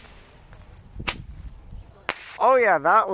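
A firework shoots off with sharp bangs.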